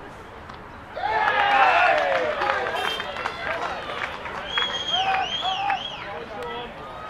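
Men shout and cheer loudly outdoors.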